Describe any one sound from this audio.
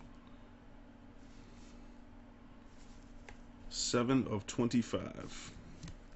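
Cardboard cards slide and tap as they are handled.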